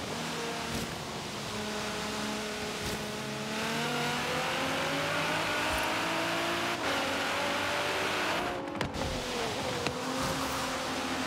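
Tyres hiss and screech on the road.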